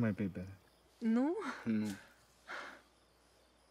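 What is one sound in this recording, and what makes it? A young woman answers softly with a questioning tone, close by.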